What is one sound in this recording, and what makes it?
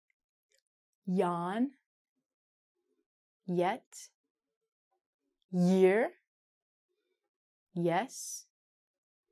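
A woman speaks slowly and clearly, saying single words with pauses between them.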